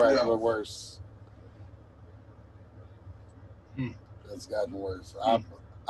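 An elderly man speaks cheerfully over an online call.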